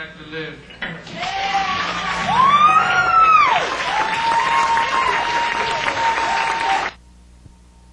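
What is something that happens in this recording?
A rock band plays loudly with electric guitars and drums.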